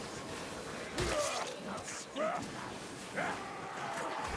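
A blade hacks into flesh with heavy thuds.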